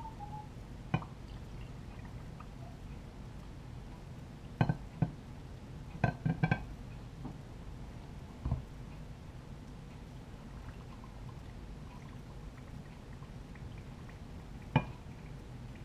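Glass jars clink against each other.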